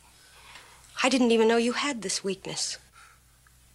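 A woman speaks firmly close by.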